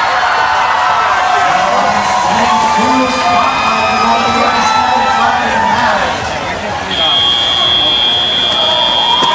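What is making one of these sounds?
A small robot's electric motors whine as it drives across the floor.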